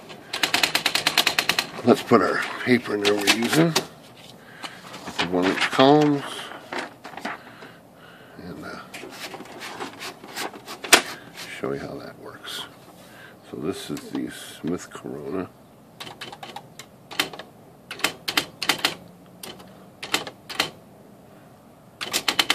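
Typewriter keys click in quick bursts.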